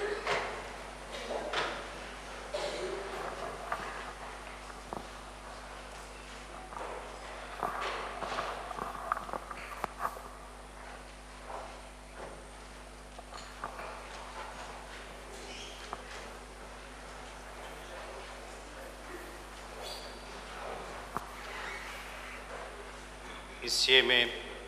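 A man speaks softly in a large echoing hall.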